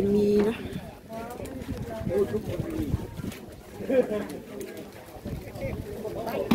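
Women talk nearby outdoors.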